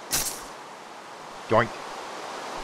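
A small burst of sparks crackles and pops.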